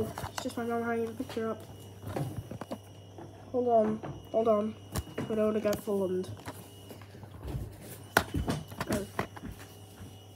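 A plastic disc case clicks and rattles as it is handled.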